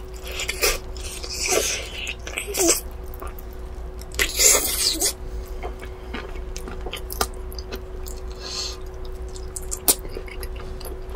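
A young woman chews and smacks her lips wetly, close to a microphone.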